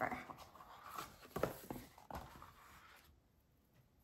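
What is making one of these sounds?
Card pages flap open as a folded booklet is unfolded.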